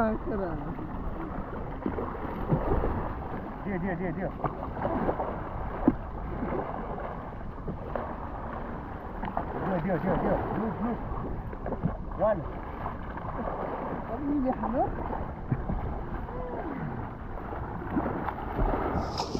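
Young men talk and call out nearby, outdoors on open water.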